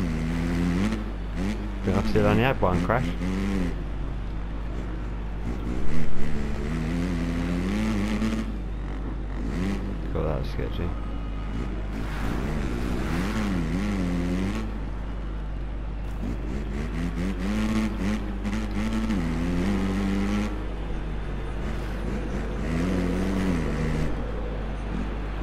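A dirt bike engine revs up and down, rising and falling in pitch.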